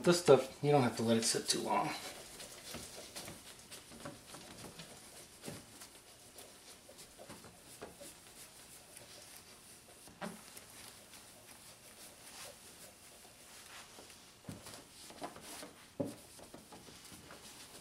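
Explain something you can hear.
A cloth rubs against a headlight.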